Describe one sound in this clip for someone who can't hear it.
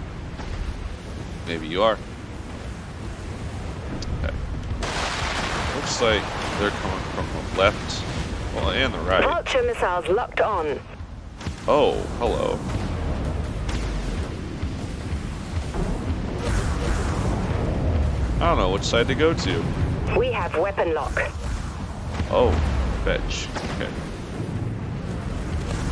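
Heavy guns fire in booming bursts.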